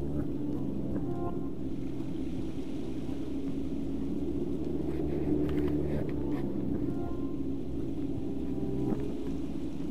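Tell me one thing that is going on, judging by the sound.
Footsteps crunch on loose pebbles.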